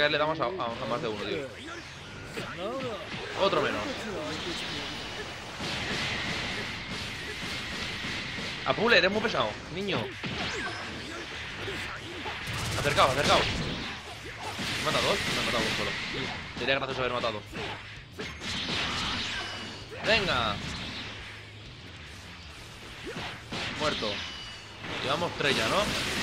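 Energy blasts whoosh and explode repeatedly.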